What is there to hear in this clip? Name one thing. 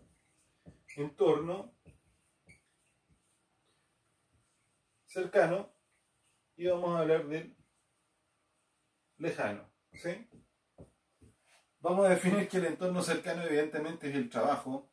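A middle-aged man speaks calmly, pausing between phrases.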